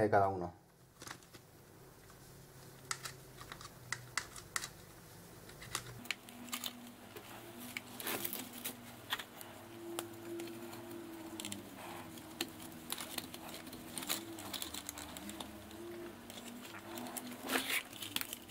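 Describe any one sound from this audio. Small plastic and metal parts click and rattle as hands handle a model car.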